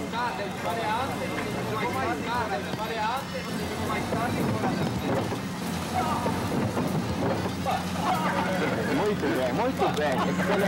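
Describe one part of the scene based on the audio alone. Adult men talk calmly nearby.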